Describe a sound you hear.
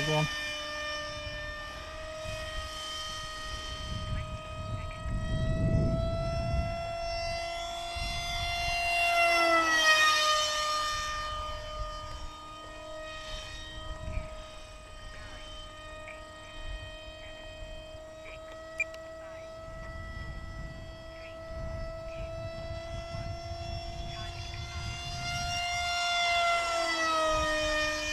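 A small jet engine whines steadily overhead, its pitch dropping as it rushes past.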